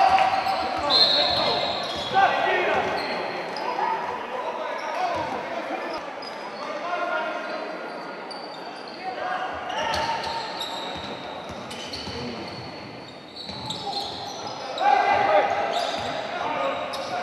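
Sneakers squeak sharply on a wooden court, echoing in a large hall.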